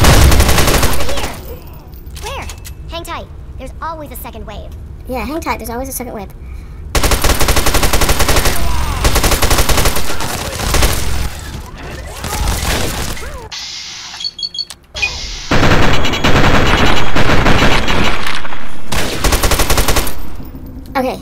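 A rifle fires loud, rapid bursts of shots.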